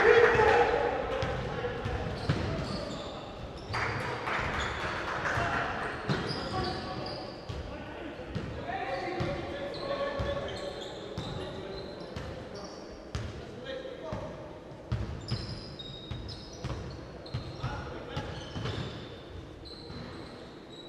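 Voices echo in a large indoor hall.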